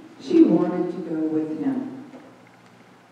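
A mixed choir sings together in a reverberant hall, then stops.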